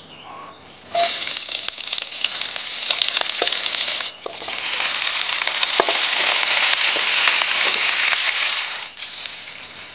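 Meat sizzles loudly in a hot pan.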